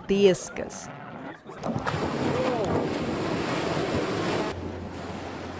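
A whale splashes heavily into the sea.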